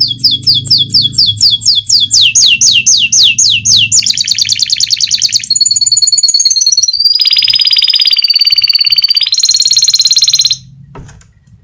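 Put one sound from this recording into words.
A small bird sings loudly and close by in fast trills and long whistled notes.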